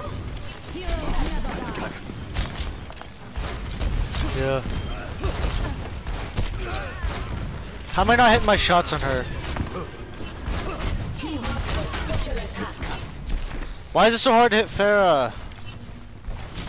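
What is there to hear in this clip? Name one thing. Arrows are loosed from a bow with sharp twangs and whooshes.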